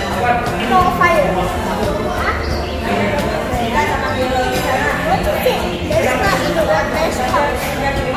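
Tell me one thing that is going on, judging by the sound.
A young boy answers in a high voice up close.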